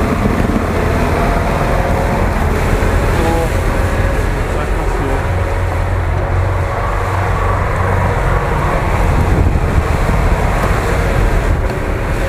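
Truck tyres churn and spray through mud.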